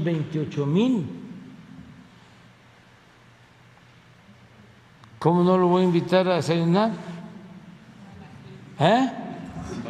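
An elderly man speaks slowly with long pauses into a microphone.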